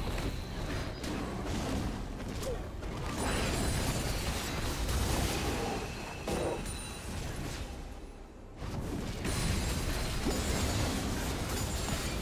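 Magic blasts crackle and burst during a fight.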